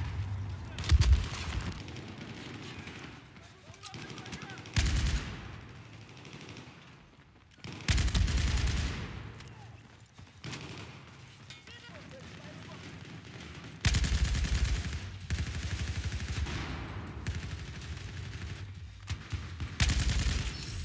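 Automatic gunfire rattles in loud rapid bursts.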